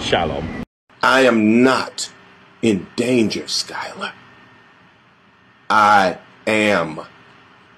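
An elderly man speaks forcefully close to a phone microphone.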